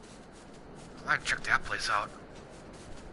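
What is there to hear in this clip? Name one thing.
A man speaks briefly into a close microphone, with animation.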